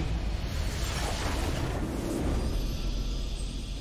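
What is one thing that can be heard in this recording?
A triumphant fanfare swells.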